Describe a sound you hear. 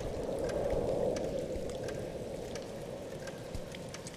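Rain patters against a window.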